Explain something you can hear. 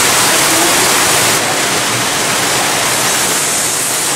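Water runs steadily.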